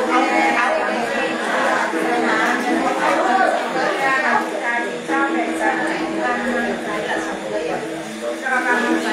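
Women sing together nearby.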